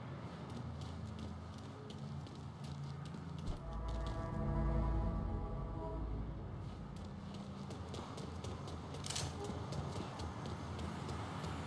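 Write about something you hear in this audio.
Footsteps run quickly over pavement.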